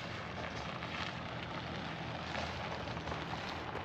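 A car engine hums nearby.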